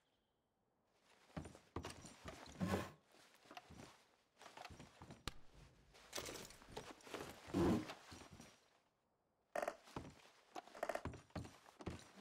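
A wooden drawer slides open and shut.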